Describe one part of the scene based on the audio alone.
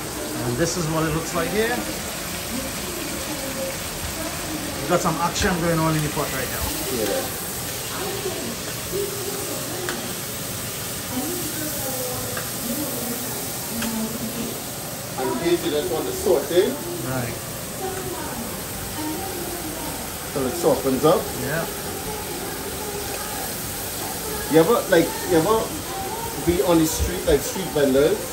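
Onions sizzle softly in hot oil.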